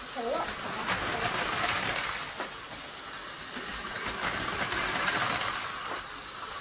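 Toy trains rattle and whir along plastic tracks.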